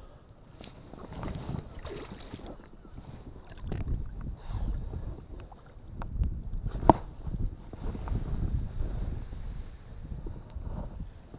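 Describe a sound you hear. Water laps gently against the side of a small boat.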